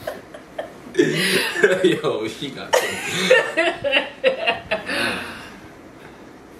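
A young woman laughs loudly.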